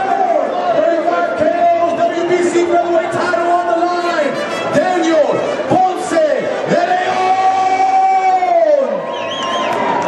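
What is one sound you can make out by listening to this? A crowd of men chants and shouts loudly in a large echoing hall.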